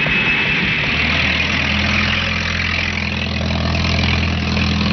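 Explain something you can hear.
An engine hums steadily.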